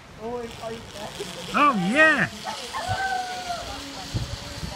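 A zip line pulley whirs along a cable.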